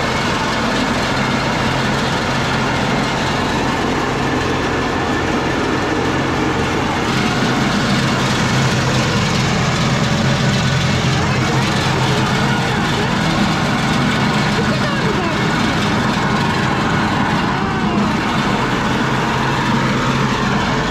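A grape crusher motor hums and rattles steadily.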